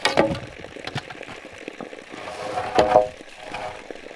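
A cut pole thuds onto the ground.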